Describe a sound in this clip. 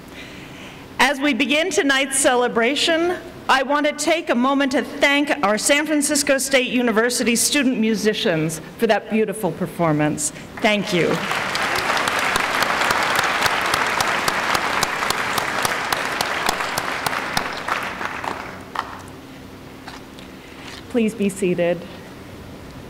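A woman speaks through a microphone and loudspeakers in a large hall.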